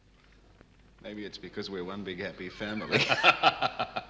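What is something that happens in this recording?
A man talks calmly and quietly nearby.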